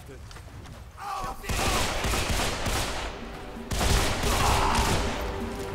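Pistol shots ring out rapidly and echo in a stone chamber.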